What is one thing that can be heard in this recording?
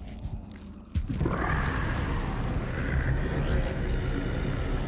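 An energy blade hums and swooshes through the air.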